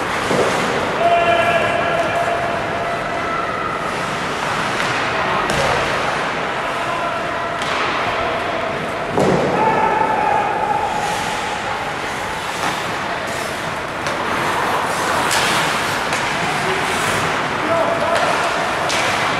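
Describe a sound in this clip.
Young men shout across an echoing rink.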